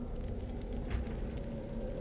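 A burst of fire whooshes and crackles.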